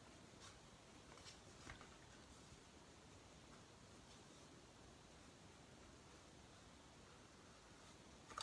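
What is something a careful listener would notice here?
A pencil scratches lightly on a wooden board.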